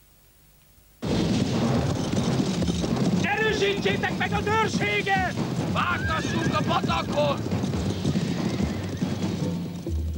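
Horses trot across grass outdoors.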